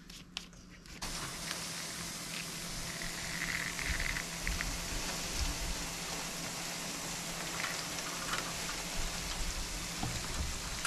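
Water sprays steadily from a garden hose.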